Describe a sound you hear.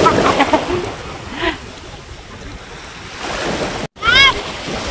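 Shallow sea water laps and splashes.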